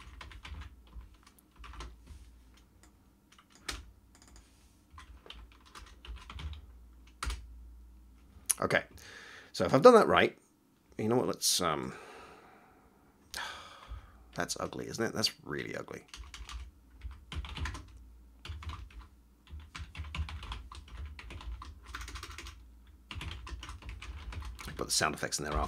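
Keys clatter on a keyboard.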